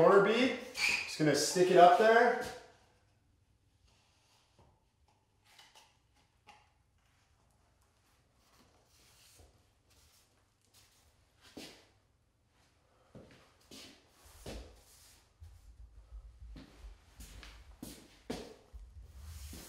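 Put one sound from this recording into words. Paper drywall tape rustles and taps against a ceiling.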